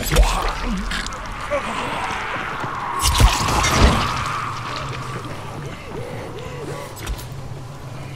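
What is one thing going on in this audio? Loud blasts boom and crack.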